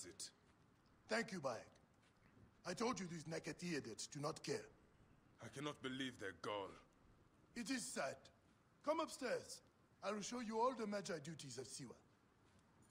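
A second man answers calmly up close.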